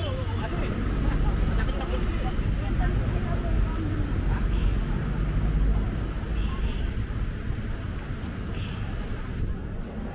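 Busy street traffic rumbles steadily outdoors.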